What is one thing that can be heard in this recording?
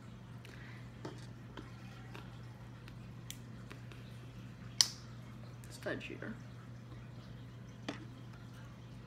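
Plastic toy bricks click and snap together.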